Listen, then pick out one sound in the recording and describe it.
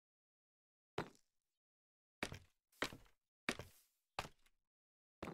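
Blocks break one after another with short crunching thuds.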